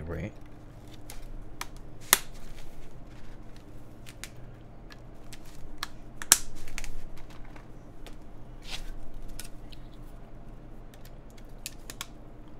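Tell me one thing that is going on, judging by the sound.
Plastic keyboard keycaps click and clack as they are handled.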